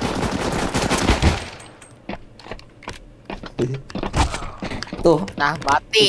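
Suppressed pistol shots fire in a short burst.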